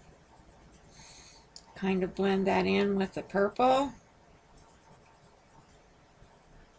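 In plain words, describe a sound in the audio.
A marker rubs across paper.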